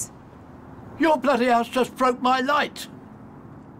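An elderly man speaks with alarm nearby.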